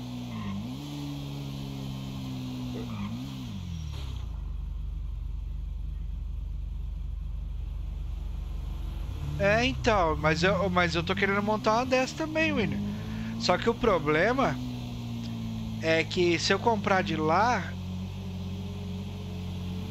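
A motorcycle engine hums steadily, revving now and then.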